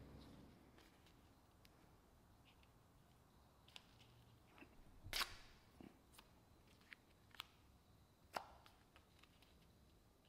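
Masking tape crinkles and tears as hands press it down.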